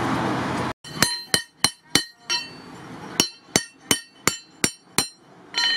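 A hammer strikes metal on an anvil in quick ringing blows.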